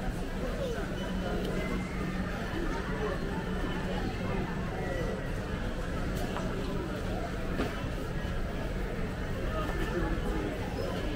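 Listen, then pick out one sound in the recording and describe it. Shopping cart wheels rattle over a hard floor.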